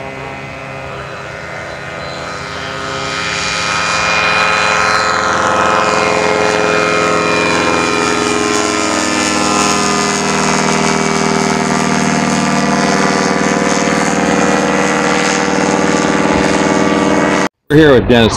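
A small propeller plane's engine drones loudly as it takes off and passes close by, its pitch sliding lower.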